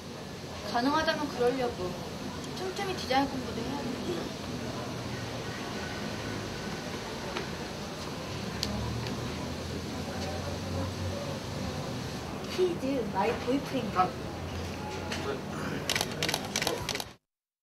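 A young woman talks calmly nearby.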